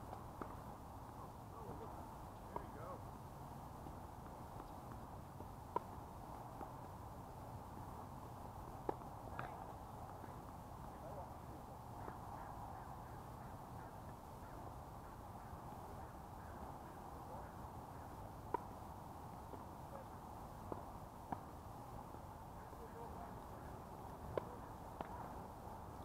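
Tennis balls are struck with rackets and pop across an open court.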